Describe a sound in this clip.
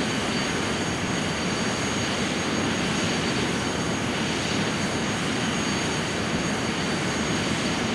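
A jet engine roars steadily at idle.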